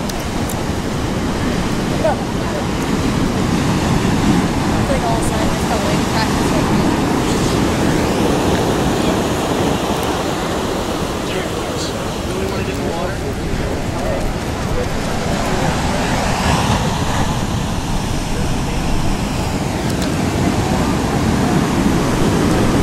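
Huge ocean waves roar and crash steadily.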